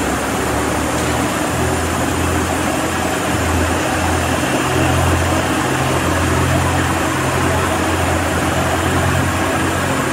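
An ice resurfacing machine's engine hums steadily in a large echoing hall.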